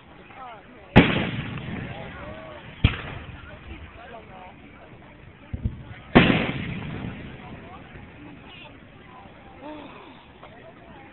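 Fireworks crackle and fizz after bursting.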